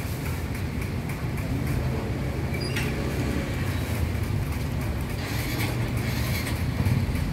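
A knife scrapes and shaves the skin off a vegetable in quick strokes.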